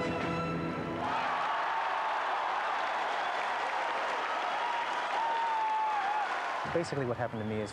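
A large crowd applauds and cheers in a big hall.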